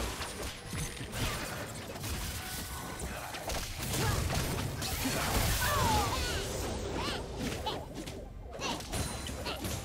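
Game sound effects of spells and attacks burst and clash in quick succession.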